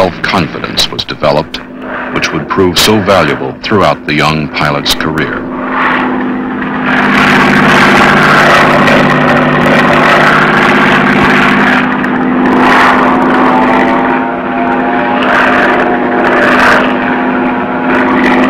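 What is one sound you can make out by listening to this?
A propeller plane's engine drones steadily and loudly.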